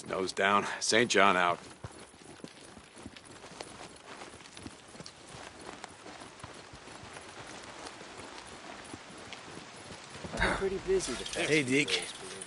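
Footsteps fall on a dirt path.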